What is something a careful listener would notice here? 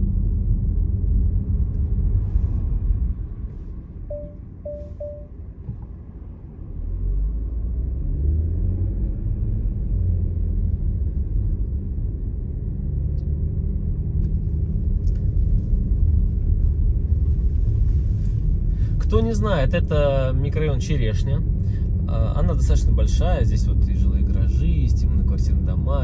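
Tyres roll over a rough road surface.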